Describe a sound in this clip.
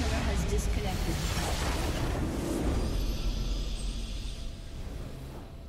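A loud game explosion roars and rumbles, then fades.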